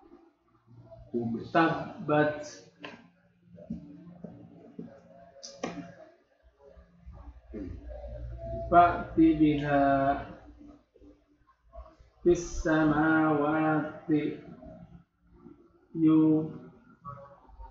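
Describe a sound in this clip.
A man speaks calmly and slowly into a close microphone, with pauses.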